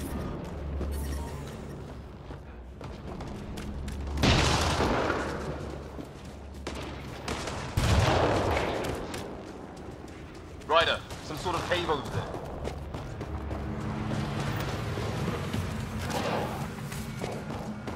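Footsteps tread on rocky ground.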